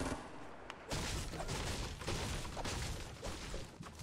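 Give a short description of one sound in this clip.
A pickaxe strikes wood with sharp knocks.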